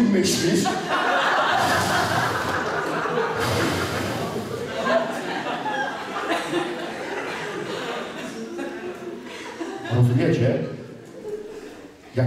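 A man speaks calmly in a large echoing hall.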